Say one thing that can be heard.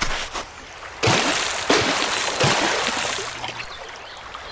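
Water splashes loudly.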